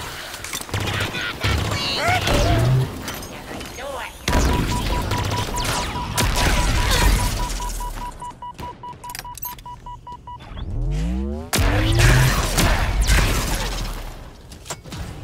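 An energy weapon fires in rapid crackling bursts.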